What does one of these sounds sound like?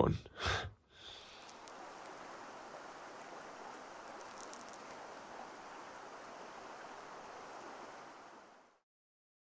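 A shallow stream flows and trickles softly.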